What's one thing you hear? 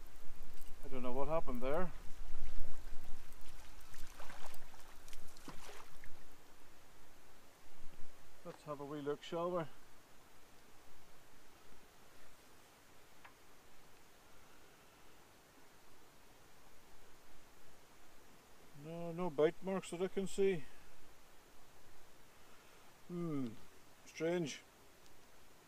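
A man speaks in short bursts close by, calmly.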